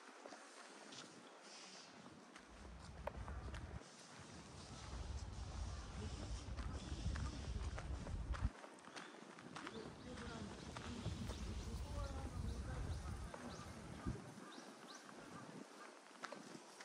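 Footsteps crunch slowly on a gravel path.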